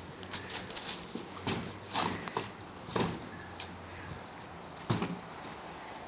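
Sneakers scrape and thump against a brick wall as a boy climbs.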